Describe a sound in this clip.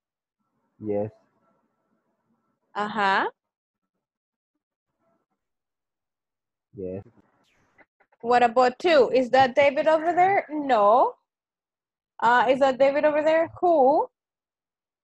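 A woman speaks calmly through an online call, in short phrases.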